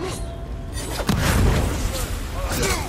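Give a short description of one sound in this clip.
A bomb explodes with a loud burst.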